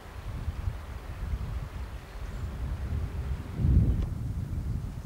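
A river ripples and flows.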